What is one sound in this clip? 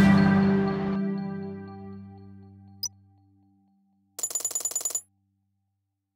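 Coins jingle as they are collected.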